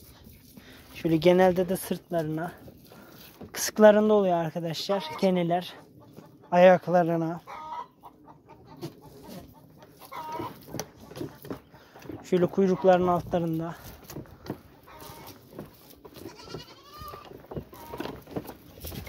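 Young goats bleat loudly and repeatedly, close by.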